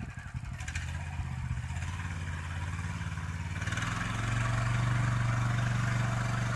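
A small tractor engine chugs steadily outdoors and grows louder as it comes closer.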